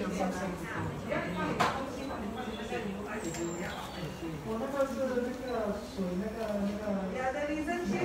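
Scissors snip through hair.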